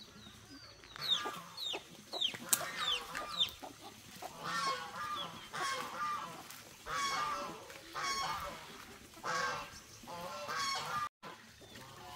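Ducks quack loudly and busily nearby.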